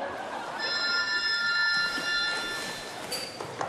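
A telephone rings.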